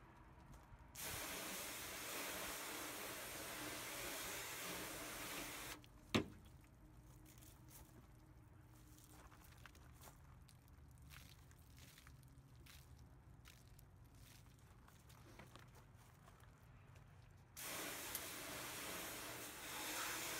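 A hose nozzle sprays a hissing jet of water onto a hard surface.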